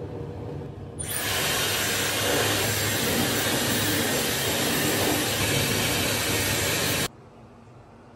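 A hair dryer blows with a loud, steady roar, then cuts off.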